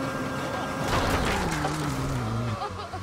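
A car crashes into a signpost with a loud bang.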